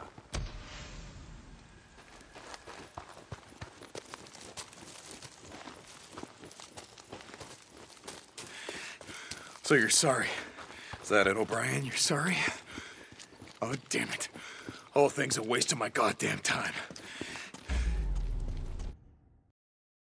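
Footsteps crunch quickly on gravel and grass.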